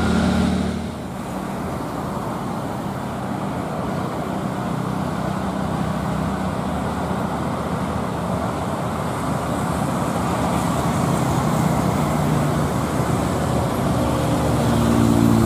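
Other cars and trucks drive past on the road.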